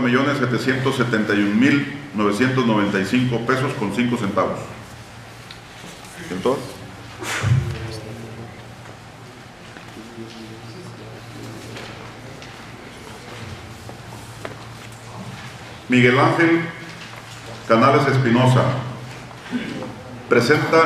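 A man reads out calmly into a microphone, heard through a loudspeaker in a room.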